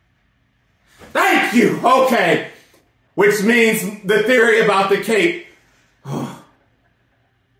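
A young man exclaims loudly and excitedly into a microphone close by.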